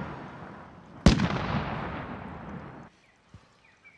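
A rifle fires a single loud shot that echoes and fades away.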